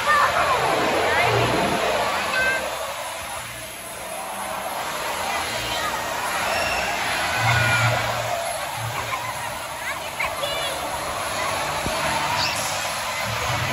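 Children squeal with excitement.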